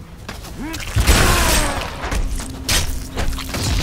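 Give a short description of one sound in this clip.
Loud blows and blasts of a fight crash and roar.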